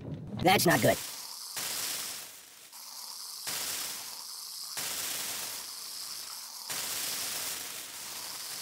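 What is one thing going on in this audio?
Bubbles fizz and hiss in pulses.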